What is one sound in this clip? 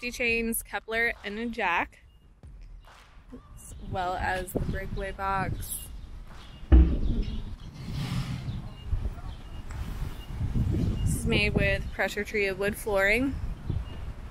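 A woman speaks calmly close by, in short phrases.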